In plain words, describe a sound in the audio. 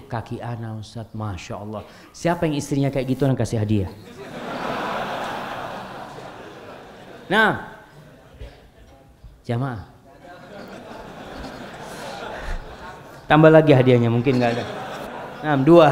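A man speaks calmly into a microphone, in a large echoing room.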